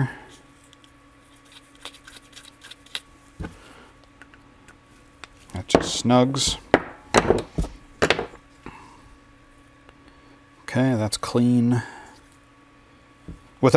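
Small metal parts click and tap as they are handled.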